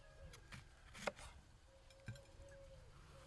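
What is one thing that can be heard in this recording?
A knife knocks on a wooden board.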